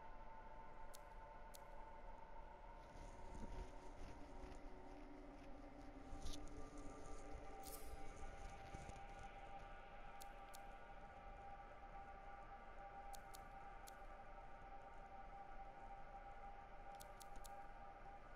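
Soft electronic menu clicks sound now and then.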